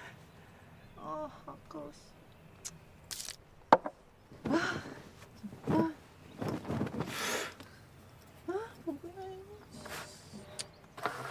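A young man speaks calmly and laughs softly nearby.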